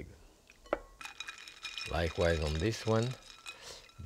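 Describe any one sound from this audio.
Ice cubes clink in a bowl of water.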